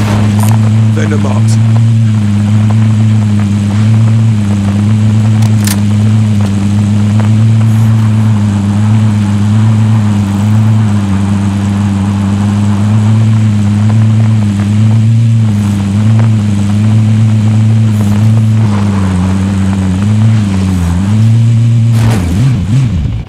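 An off-road vehicle's engine drones steadily and loudly.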